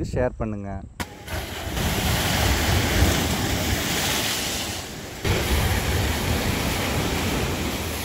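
Waves crash and churn loudly against a shore.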